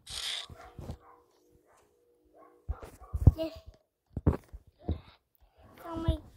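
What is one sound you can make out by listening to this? A child speaks excitedly into a microphone, close by.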